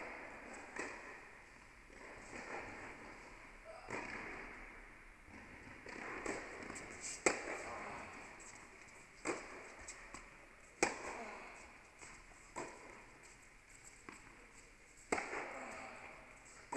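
Sneakers squeak and shuffle on a hard court.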